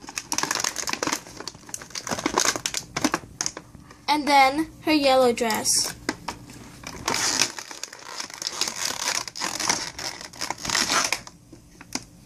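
Plastic packaging crinkles and crackles.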